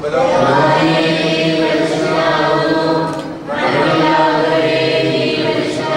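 A man chants slowly in a low voice through a microphone.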